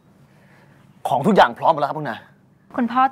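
A young man speaks with surprise, close by.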